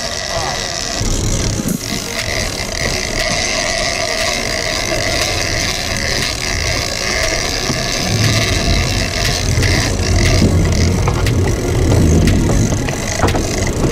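A fishing reel clicks and whirs as a line is wound in quickly.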